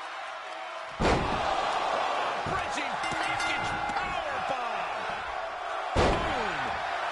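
A wrestler's body slams onto the ring mat with a loud thud.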